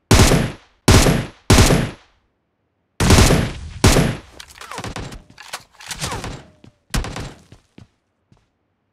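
Loud rifle shots ring out in short bursts, with echoes trailing off.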